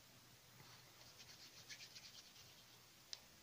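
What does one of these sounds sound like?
Fingers rub and press soft clay with quiet scratching.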